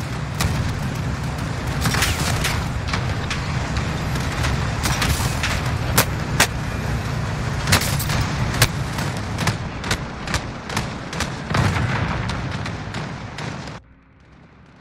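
A steam train rumbles past, loud and close.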